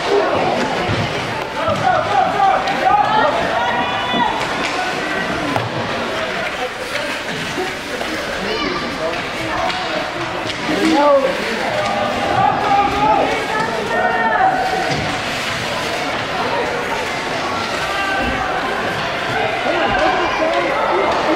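Adult spectators shout and cheer in a large echoing hall.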